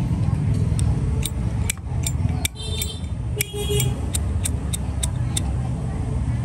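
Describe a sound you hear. A metal lighter lid clicks open and snaps shut.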